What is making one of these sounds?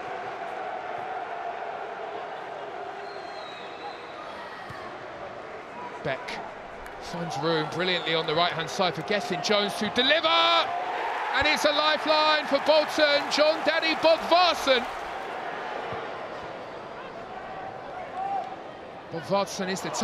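A stadium crowd murmurs and roars.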